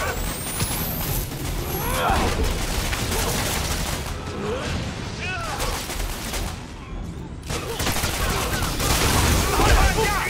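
Punches and blows thud in a brawl.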